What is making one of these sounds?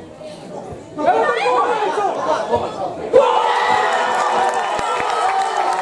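A group of men cheer outdoors.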